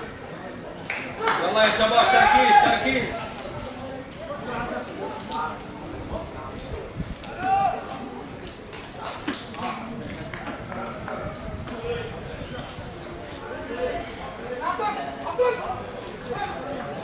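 Young men shout and call to each other across an open pitch.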